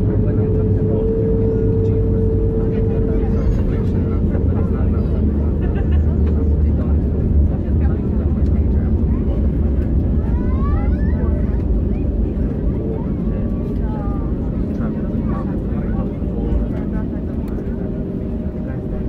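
Jet engines roar steadily from inside an aircraft cabin.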